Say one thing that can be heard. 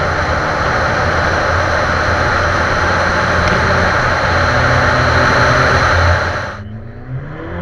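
Wind and tyres roar loudly on a road at speed.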